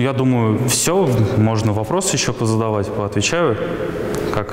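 A young man speaks into a microphone.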